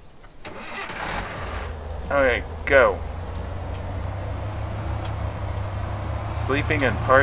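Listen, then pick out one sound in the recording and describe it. A car engine starts and hums steadily.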